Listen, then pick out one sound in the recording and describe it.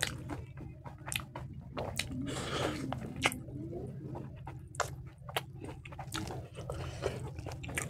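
A man chews and slurps food close to a microphone.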